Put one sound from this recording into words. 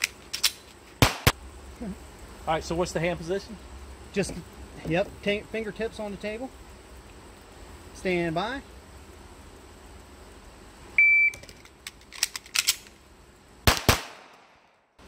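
Gunshots crack loudly outdoors.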